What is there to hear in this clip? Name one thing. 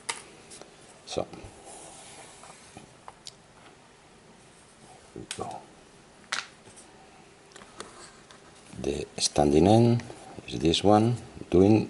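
A cord scrapes and rustles against cardboard as it is wound.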